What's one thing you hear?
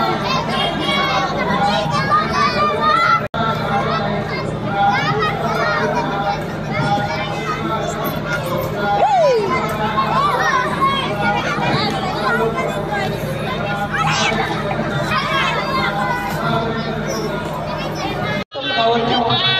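Young children shout and chatter close by.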